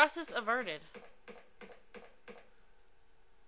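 Footsteps tap on a hard floor at a steady pace.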